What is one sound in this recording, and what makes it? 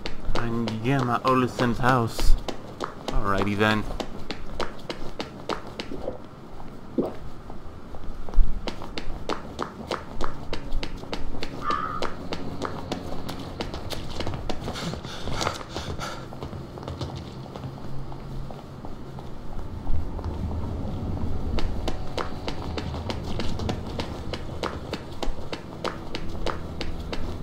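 Footsteps tap steadily on cobblestones.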